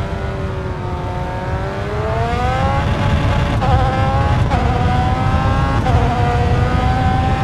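A racing car engine revs up, rising in pitch with quick gear shifts.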